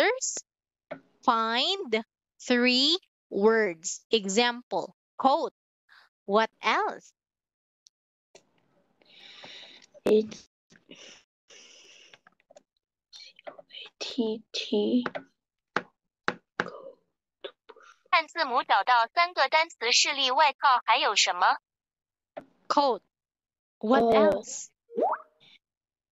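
A young boy answers quietly over an online call.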